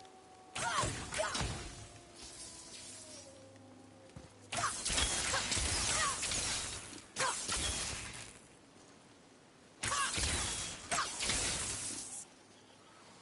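Footsteps rustle through tall grass in bursts.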